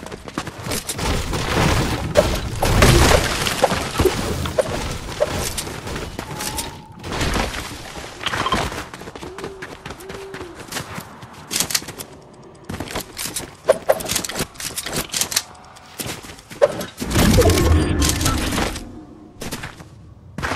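Footsteps patter quickly on a hard surface.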